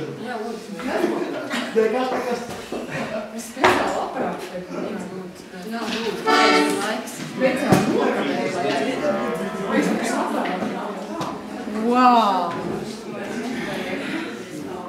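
Several women talk and laugh nearby with animation.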